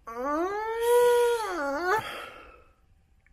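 A young man hums a long, drawn-out tone of delight.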